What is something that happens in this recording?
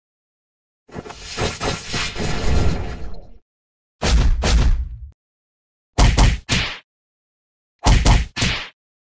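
Sword slashes and hits land in short bursts.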